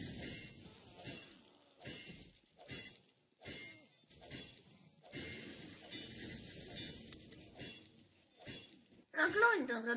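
A wrench clangs repeatedly against a metal machine.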